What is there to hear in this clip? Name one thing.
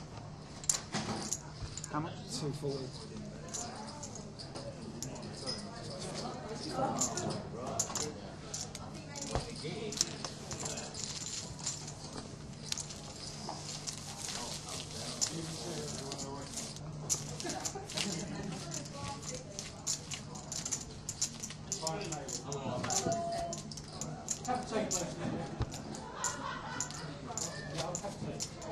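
Poker chips click and clatter as they are handled.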